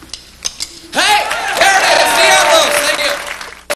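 A man shouts loudly into a microphone.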